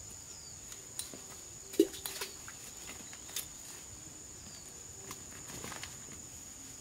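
Fruit stems snap sharply as fruit is picked and cut from a branch.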